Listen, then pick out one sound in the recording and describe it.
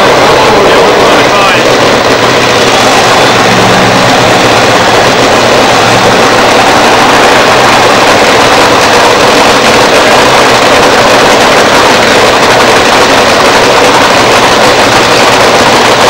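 A nitro-fuelled dragster engine runs with a loud, harsh rumble.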